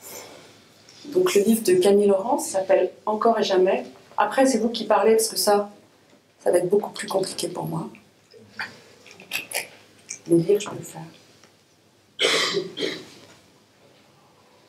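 A woman reads aloud from a book into a microphone, calm and clear.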